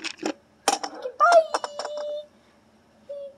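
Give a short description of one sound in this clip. A young child speaks close by with animation.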